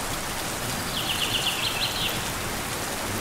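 A small bird chirps in a quick series of high chips.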